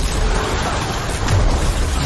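A game's glowing energy blast whooshes and crackles.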